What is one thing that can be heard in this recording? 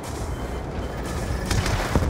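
Jet planes roar overhead amid distant explosions.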